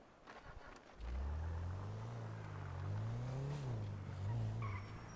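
A car engine starts and revs as the car pulls away.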